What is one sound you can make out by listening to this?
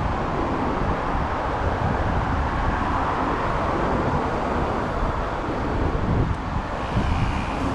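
Cars hum past on a city street.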